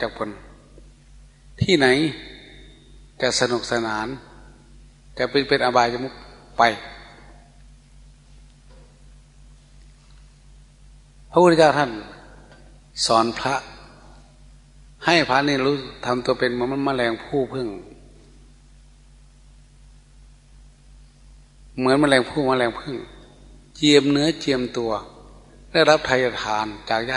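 An elderly man speaks calmly and slowly, in bursts with long pauses, through a microphone.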